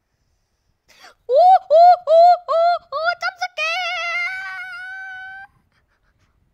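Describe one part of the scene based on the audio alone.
A large sea creature lets out an eerie, wavering wail.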